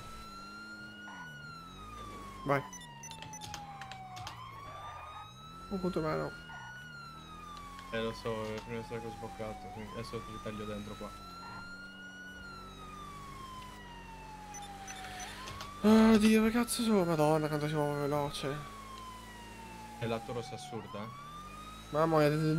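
A siren wails, slowly rising and falling.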